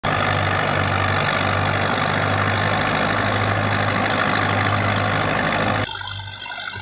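A threshing machine roars loudly.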